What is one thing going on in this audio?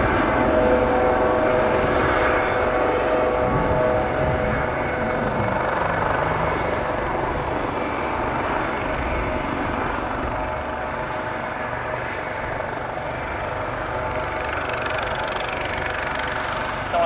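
A helicopter's rotor blades thump steadily.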